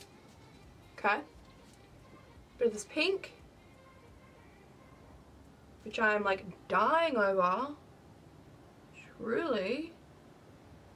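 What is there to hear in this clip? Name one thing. A young woman talks calmly and close by, in short bursts.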